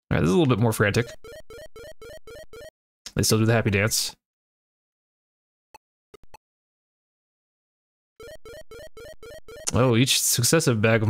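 Beeping electronic game tones play.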